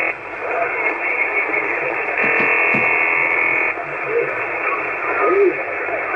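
A radio receiver hisses with crackling static.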